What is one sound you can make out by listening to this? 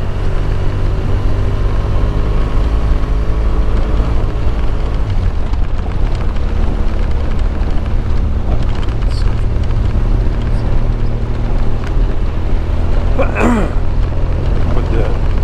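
Wind rumbles loudly past.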